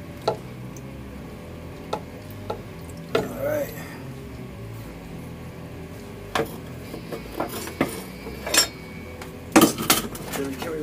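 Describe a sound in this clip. Metal tools clink and clank.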